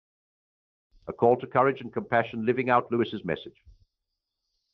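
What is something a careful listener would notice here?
A middle-aged man speaks calmly and clearly, close by.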